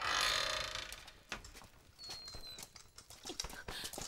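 Torch flames crackle and roar.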